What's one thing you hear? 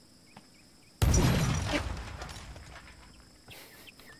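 A loud explosion booms and its rumble slowly fades.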